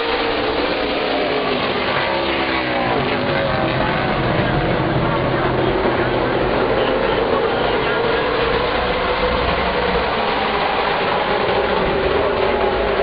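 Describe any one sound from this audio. A pack of race car engines roars loudly, rising and falling in pitch as the cars pass.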